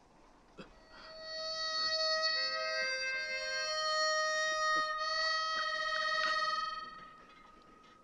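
A harmonica wails a sustained, piercing chord.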